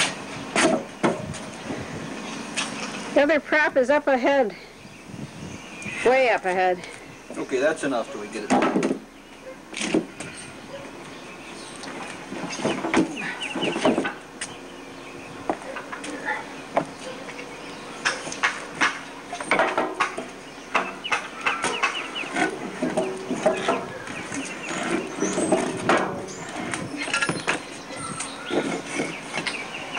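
A heavy plastic tank thumps and scrapes against wooden boards.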